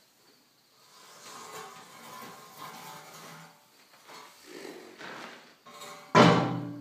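Metal scrapes along the ground.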